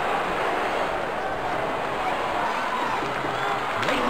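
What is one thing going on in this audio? Ice skates scrape and swish across an ice rink.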